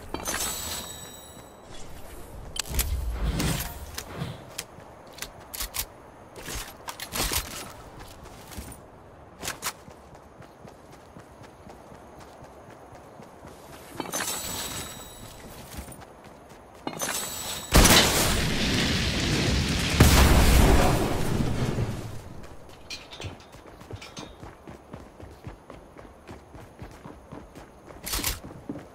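Quick footsteps patter on grass and hard ground.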